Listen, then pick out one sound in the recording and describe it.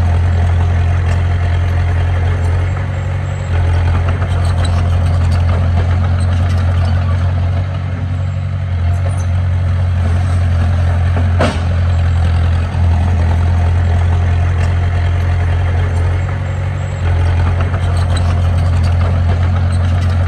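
A bulldozer's tracks clank and squeak as it pushes soil.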